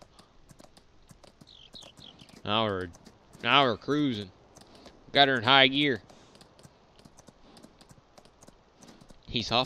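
A horse gallops, its hooves thudding on dirt.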